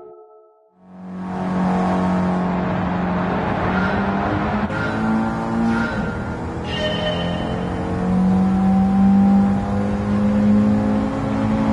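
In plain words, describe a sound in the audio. A racing car engine roars and revs at high speed.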